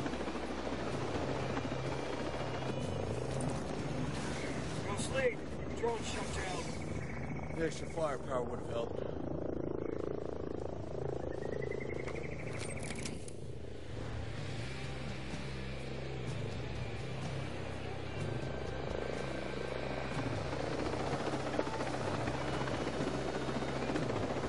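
A helicopter's rotor thumps steadily.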